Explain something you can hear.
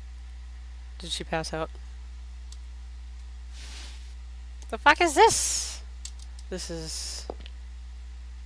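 A young woman speaks in short bursts close to a microphone.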